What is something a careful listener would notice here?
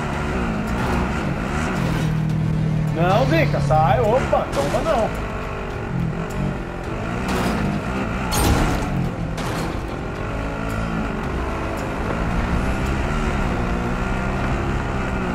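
A vehicle engine rumbles and revs steadily.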